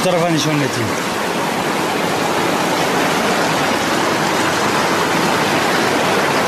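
A mountain stream rushes and splashes over rocks nearby.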